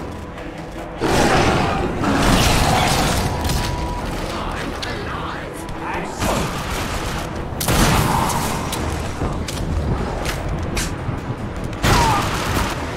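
A pistol fires sharp shots.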